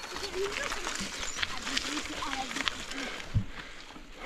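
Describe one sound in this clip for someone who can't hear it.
Mountain bike tyres crunch over a rocky dirt track.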